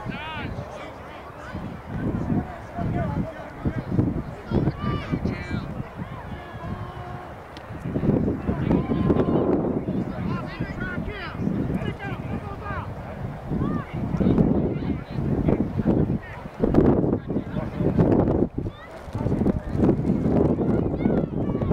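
Players and spectators shout and call out across an open field.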